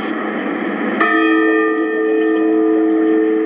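A radio receiver gives out a steady humming tone.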